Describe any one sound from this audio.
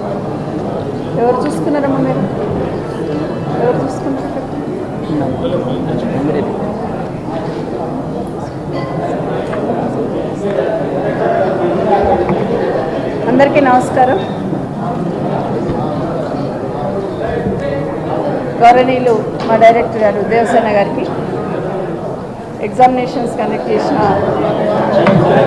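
A middle-aged woman speaks calmly into microphones.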